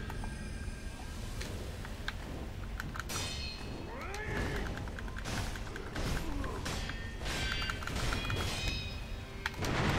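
Swords clash and ring with sharp metallic strikes.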